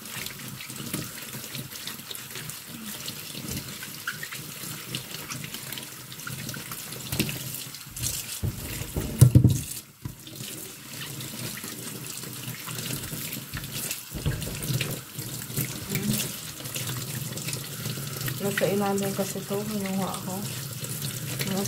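Tap water runs and splashes into a metal sink.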